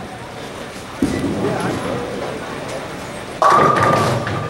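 A bowling ball rolls down a lane with a low rumble.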